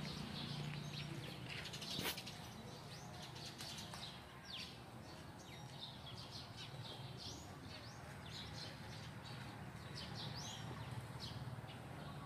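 Water splashes softly in a fountain nearby.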